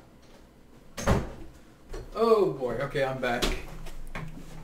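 A chair creaks and bumps as a man sits down.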